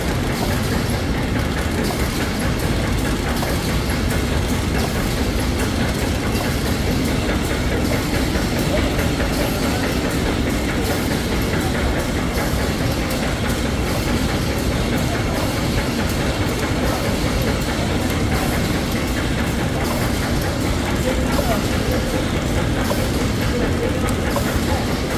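A packaging machine runs with a steady mechanical whirr and clatter.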